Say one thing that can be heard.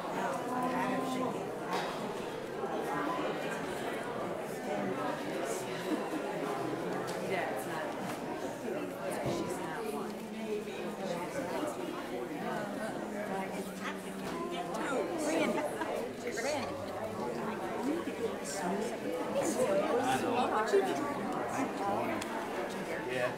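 Many people chat in low voices throughout a large echoing hall.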